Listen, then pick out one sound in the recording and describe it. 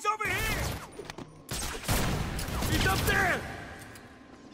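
Heavy blows land with loud thuds in a fight.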